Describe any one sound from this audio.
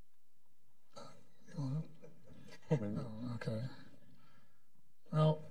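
An older man answers calmly through a microphone.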